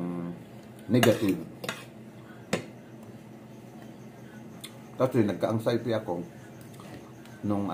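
A spoon and fork clink against a plate.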